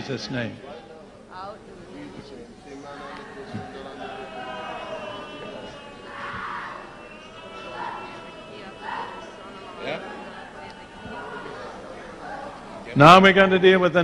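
A crowd murmurs and prays softly in the background.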